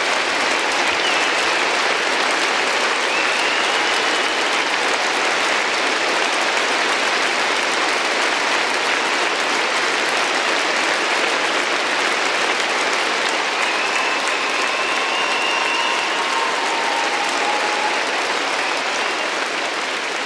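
People in a crowd whistle and cheer.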